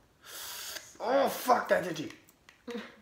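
A man groans and laughs close by.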